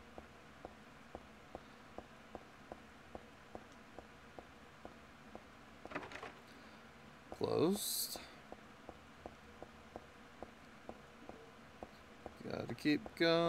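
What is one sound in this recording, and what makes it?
Footsteps tap steadily on hard stairs.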